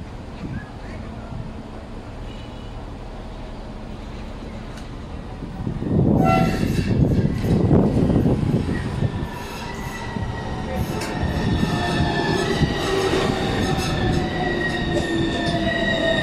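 A tram approaches and rolls into the stop, its wheels rumbling on the rails.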